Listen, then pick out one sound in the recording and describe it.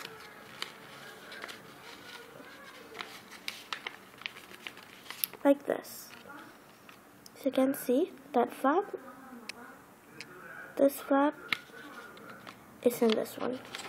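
Paper rustles and creases softly as it is folded.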